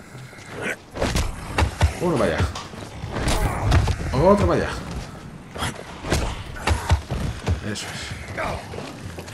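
Heavy blows thud and smack during a close fight.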